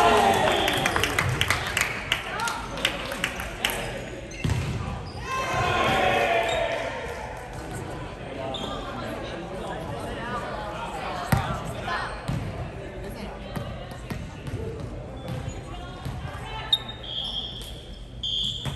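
Shoes squeak sharply on a hardwood floor in a large echoing gym.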